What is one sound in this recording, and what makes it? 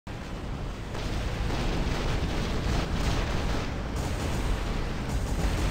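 Heavy mechanical footsteps thud and clank.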